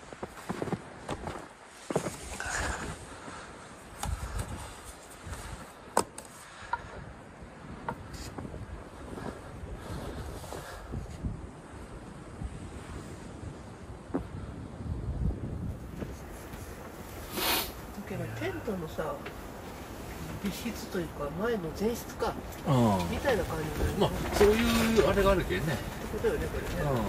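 Wind gusts outdoors against a fabric tent wall.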